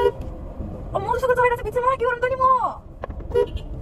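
A young woman speaks close by, muffled by a face mask.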